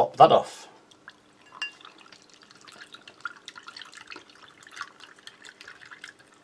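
A spoon stirs and clinks lightly against a glass.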